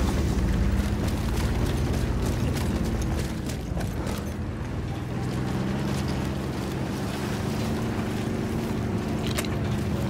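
A tank engine rumbles and drones steadily nearby.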